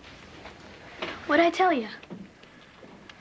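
A boy speaks softly nearby.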